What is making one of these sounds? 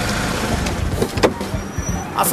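A car door handle clicks as it is pulled.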